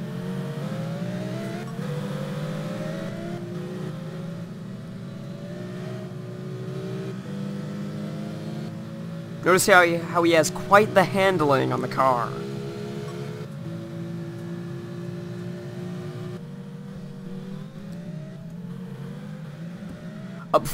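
A racing car engine roars steadily, rising in pitch and dropping with each gear change.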